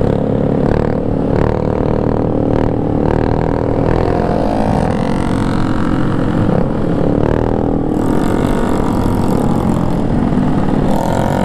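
Motorcycle engines hum and buzz steadily close by.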